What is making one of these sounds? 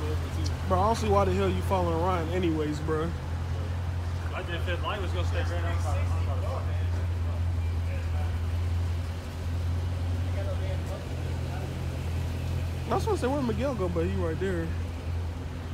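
A young man talks loudly nearby.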